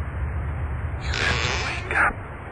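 A small wooden cupboard door creaks open.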